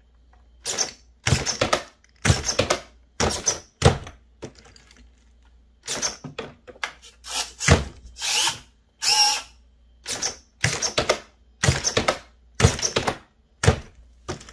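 A toy car's suspension clacks as the car hops and drops.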